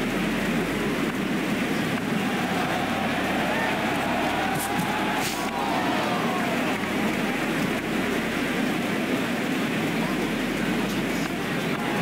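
A large crowd murmurs and cheers steadily throughout.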